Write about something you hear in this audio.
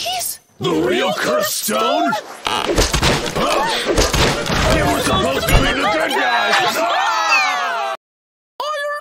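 High-pitched cartoon voices shout and chatter excitedly.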